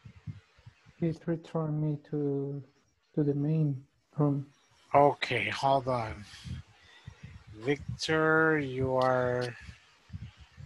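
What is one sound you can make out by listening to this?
A man speaks calmly and clearly into a microphone, heard as if over an online call.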